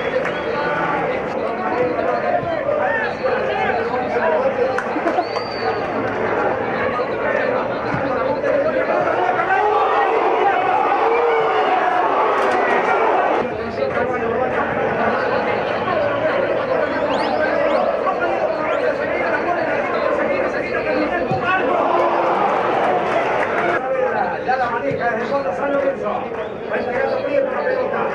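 A stadium crowd cheers and shouts.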